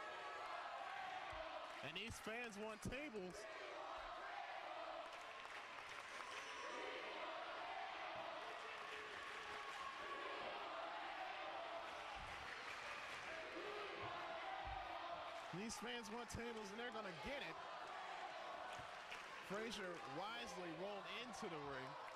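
A crowd cheers and shouts steadily in a large echoing hall.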